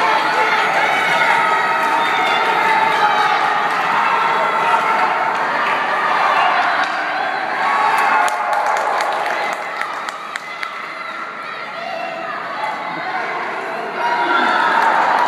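Hockey sticks click against a puck.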